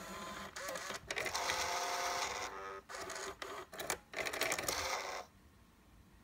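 A car CD player's mechanism whirs as it loads a disc.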